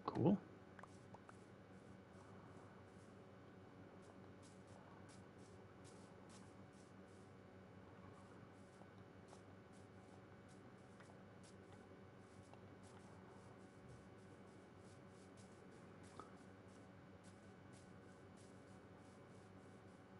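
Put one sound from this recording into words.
Footsteps thud softly on grass, in a steady walking rhythm.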